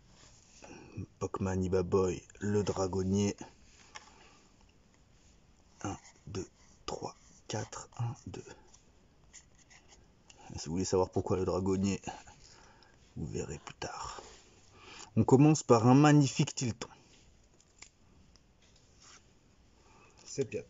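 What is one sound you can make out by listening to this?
Playing cards slide and flick against each other in someone's hands.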